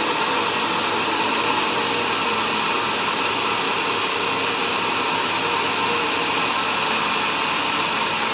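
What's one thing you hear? A sawmill band saw cuts steadily through a large log with a loud, high whining roar.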